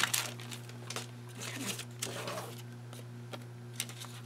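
Paper rustles as hands handle it.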